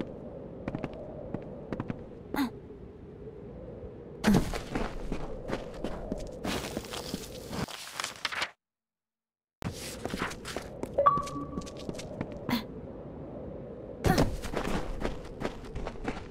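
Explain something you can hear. Footsteps patter quickly over ground and wooden boards.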